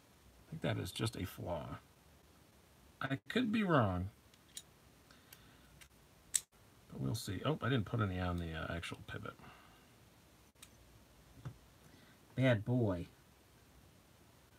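Small metal knife parts click softly as they are handled.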